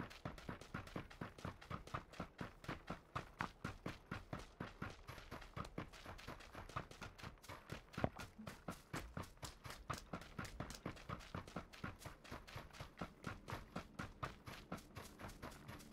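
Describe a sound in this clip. Footsteps run quickly over dry ground and grass.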